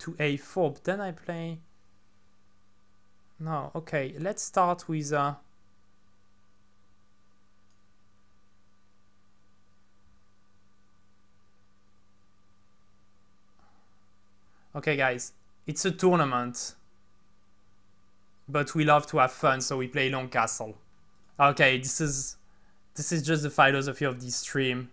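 A young man speaks close to a microphone in short bursts, with pauses.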